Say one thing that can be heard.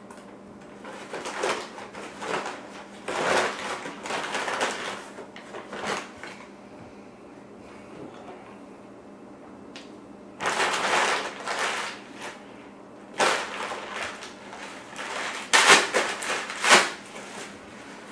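A paper bag crinkles and rustles in hands.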